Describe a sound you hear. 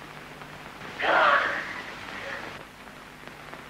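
A man speaks a few loud words.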